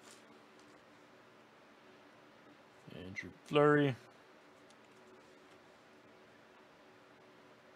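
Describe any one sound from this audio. Trading cards slide against each other as they are shuffled.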